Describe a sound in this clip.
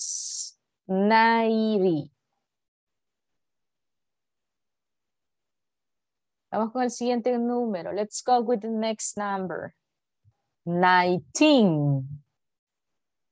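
A young woman speaks clearly over an online call.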